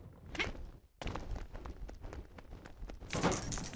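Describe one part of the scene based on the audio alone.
Small plastic pieces clatter and scatter across the floor.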